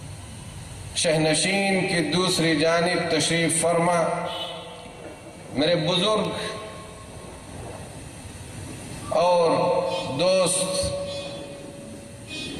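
A middle-aged man speaks into a microphone through a loudspeaker in a large echoing space, in a slow, sung chanting tone.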